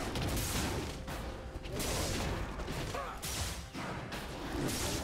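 Video game combat effects clash and whoosh in quick bursts.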